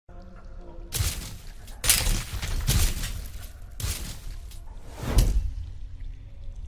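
Heavy stone blocks crash down and tumble with loud booming impacts.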